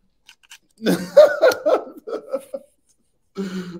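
Men laugh heartily over an online call.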